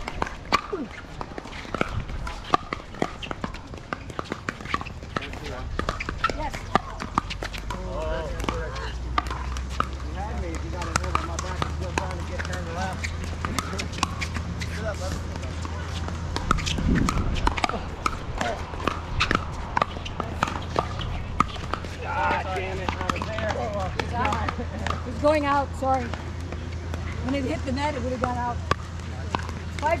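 Paddles pop sharply against a plastic ball, from several courts around.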